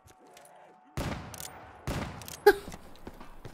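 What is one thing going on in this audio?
A gun fires loud, booming shots.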